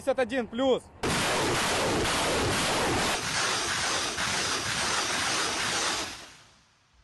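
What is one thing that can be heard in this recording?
A multiple rocket launcher fires a salvo of rockets with a sustained roar.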